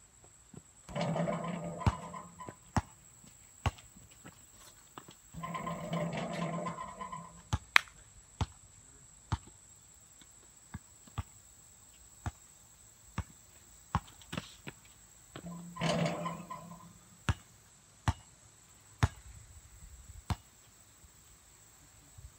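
A basketball bounces on hard pavement outdoors.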